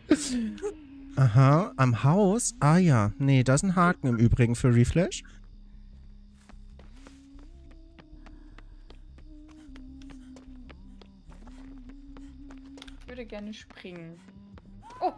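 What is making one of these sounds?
Footsteps walk on the ground.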